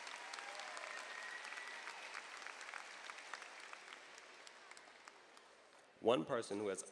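A crowd claps and cheers in a large hall.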